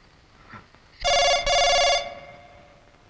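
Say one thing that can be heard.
A phone rings electronically.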